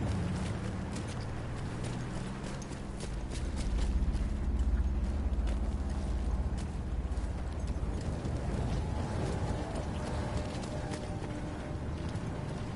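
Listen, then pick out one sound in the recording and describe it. Footsteps crunch through undergrowth.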